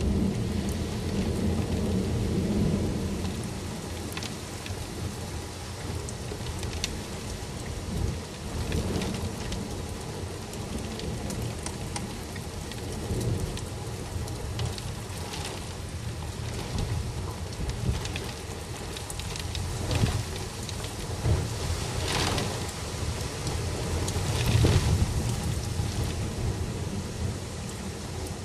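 Strong wind gusts roar, rising and falling.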